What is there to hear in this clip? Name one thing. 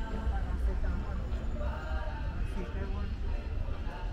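A young woman talks on a phone as she walks past.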